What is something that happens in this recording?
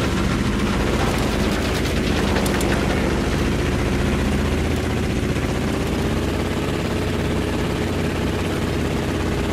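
Wind rushes loudly past the plane.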